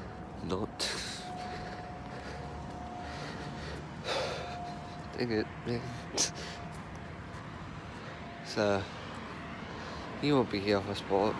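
A young man talks casually, close by, in short bursts.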